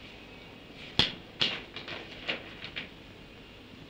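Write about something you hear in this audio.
Papers rustle and crinkle as they are handled.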